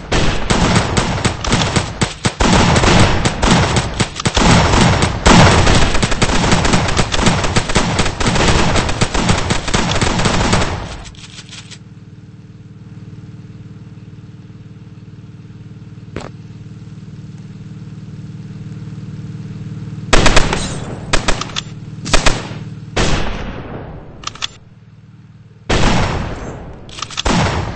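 Rapid gunfire crackles and pops in quick bursts.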